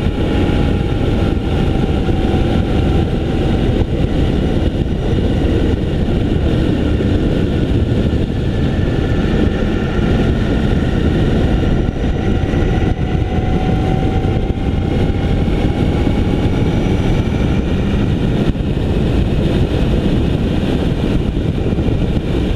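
A motorcycle engine hums steadily close by, its pitch slowly rising and falling.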